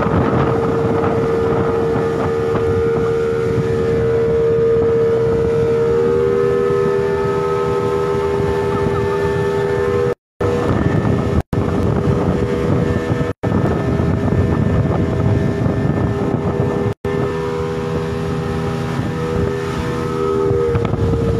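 An outboard motor roars steadily at high speed.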